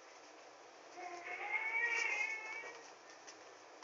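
A small pet whimpers softly.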